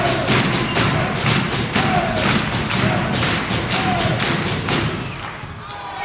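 A crowd claps and bangs noisemakers in a steady fast rhythm in a large echoing hall.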